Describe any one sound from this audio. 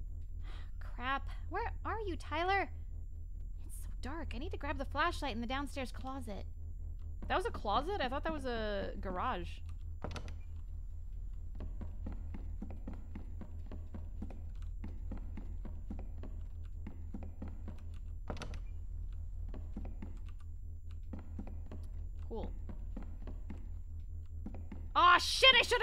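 A young woman speaks animatedly close to a microphone.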